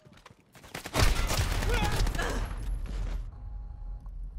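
Gunfire rattles loudly up close.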